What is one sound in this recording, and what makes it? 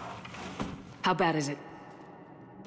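A woman speaks with concern.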